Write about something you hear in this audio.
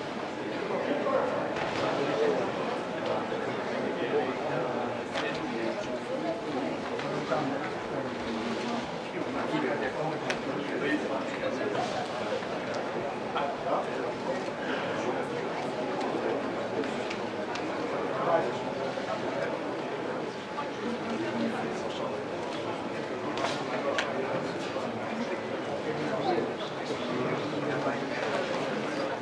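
A crowd murmurs and cheers throughout a large hall.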